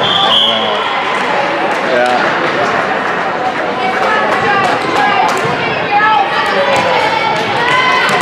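Many young girls chatter and call out in an echoing gym hall.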